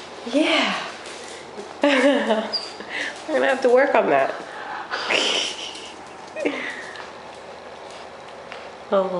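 A small dog whines and yelps close by.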